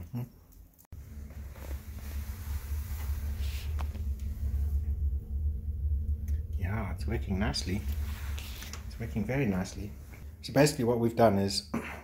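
A wood fire roars and crackles inside a stove.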